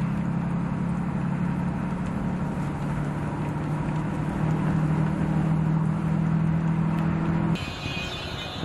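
A pickup truck's engine drones as it drives along a road.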